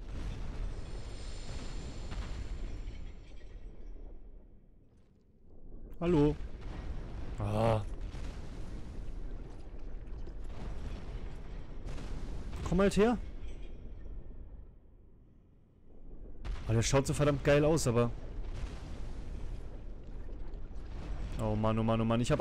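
A giant creature stomps heavily on stone.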